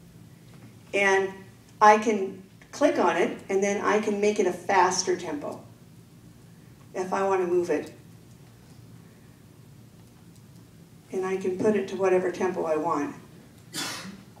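A woman speaks in short bursts into a microphone, heard through a loudspeaker in a large room.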